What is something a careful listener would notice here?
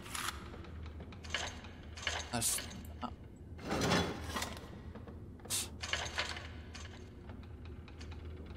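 A heavy metal mechanism grinds and clanks as it slowly turns.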